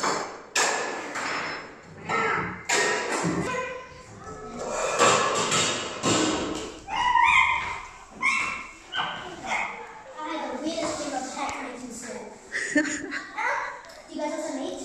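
Young children shout and squeal playfully nearby.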